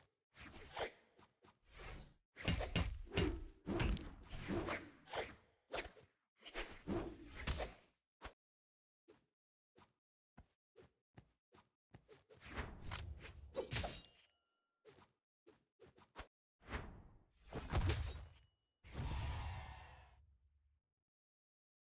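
Weapon swings and hits crack in a platform fighting game.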